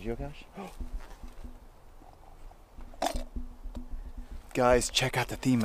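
A man speaks calmly, close up.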